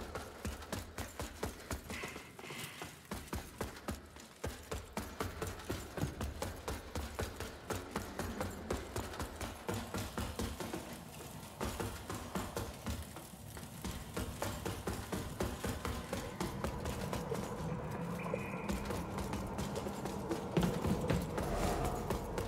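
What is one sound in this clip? Armoured footsteps thud quickly on stone in an echoing space.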